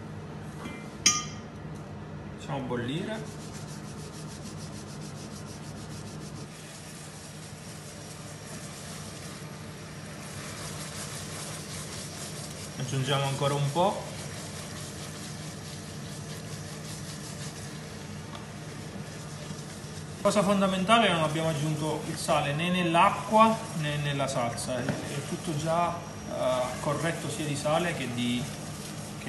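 Sauce bubbles and sizzles softly in a pan.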